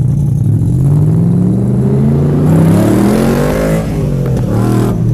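A sports car engine rumbles loudly close by and revs, rising in pitch.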